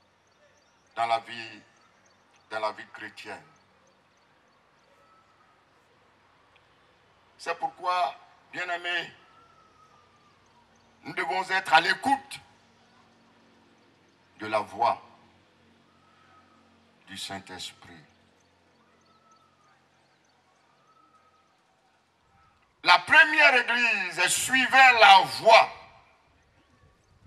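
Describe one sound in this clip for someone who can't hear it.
A man preaches with animation through a microphone and loudspeakers, in short bursts with pauses.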